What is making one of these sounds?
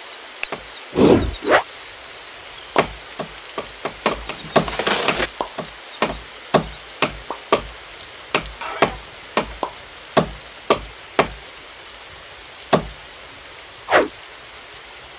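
An axe chops into wood with sharp, repeated blows.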